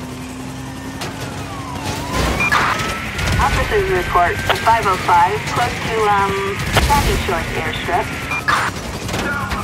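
Gunshots crack.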